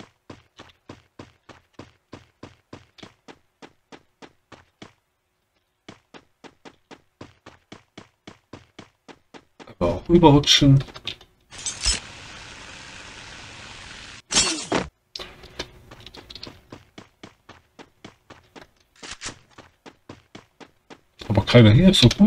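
Footsteps patter quickly and evenly on the ground.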